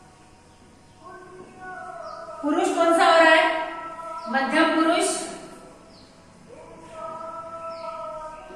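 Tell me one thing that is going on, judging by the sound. A woman speaks clearly and steadily, as if teaching.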